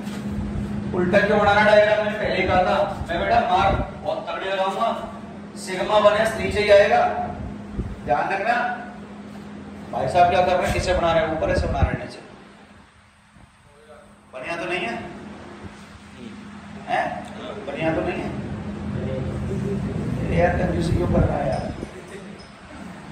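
A man lectures calmly, close by.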